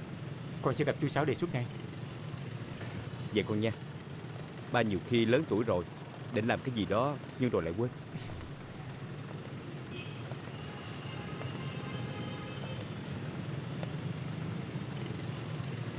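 Motorbikes hum past steadily in the street.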